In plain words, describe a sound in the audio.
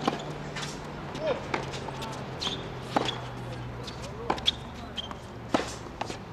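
Tennis balls are struck with rackets in a steady rally, each hit a sharp pop.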